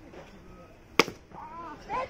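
A metal bat strikes a baseball with a sharp crack.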